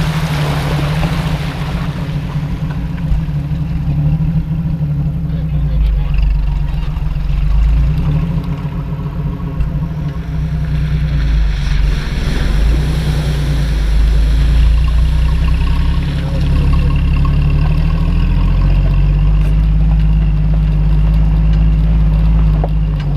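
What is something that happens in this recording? A vehicle engine rumbles steadily up close.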